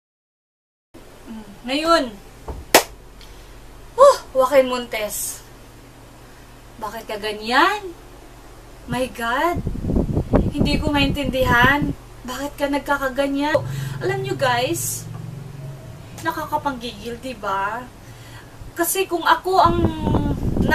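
A middle-aged woman speaks with animation close by.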